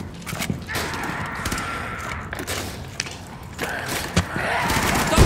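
A rifle fires sharp gunshots indoors.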